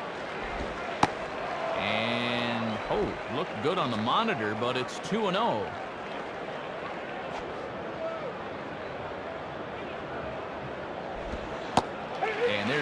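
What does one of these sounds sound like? A baseball smacks into a glove.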